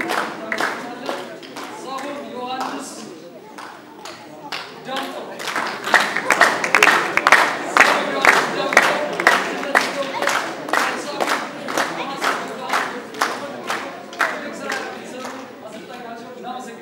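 A crowd of children chatters in a large echoing hall.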